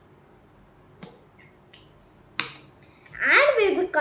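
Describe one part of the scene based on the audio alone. A marker cap clicks shut.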